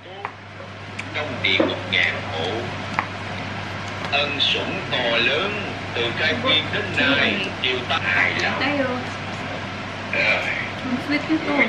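A young woman talks casually nearby.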